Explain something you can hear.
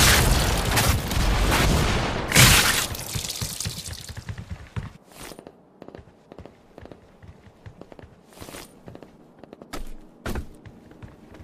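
Rockets explode with loud booms.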